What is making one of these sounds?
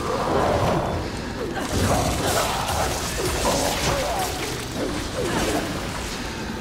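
Monsters screech and snarl.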